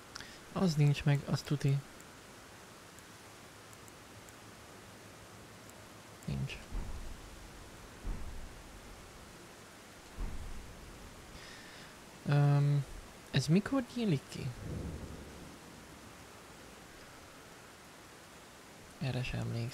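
A young man talks casually and close to a microphone.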